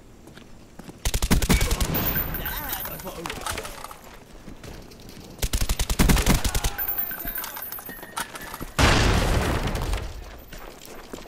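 Rapid bursts of automatic gunfire ring out close by.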